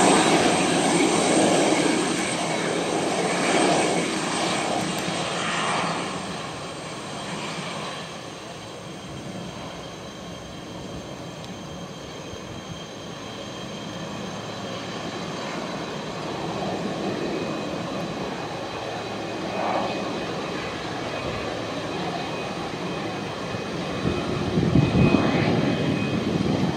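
Jet engines roar loudly as a large airliner taxis past.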